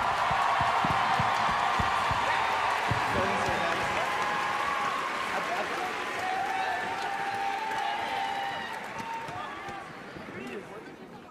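A large crowd cheers and shouts in a big echoing hall, then gradually quiets down.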